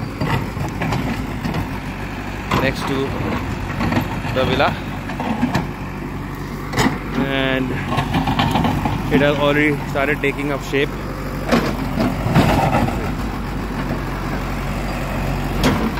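Stones and dirt clatter and scrape as a digger bucket moves them.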